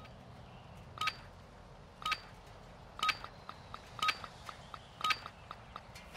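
A countdown beep sounds once a second.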